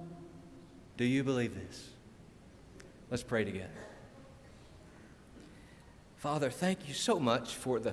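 A middle-aged man speaks with animation into a microphone, in a slightly echoing room.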